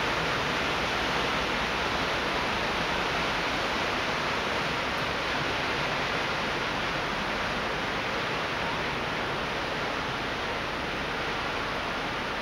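Water rushes steadily below.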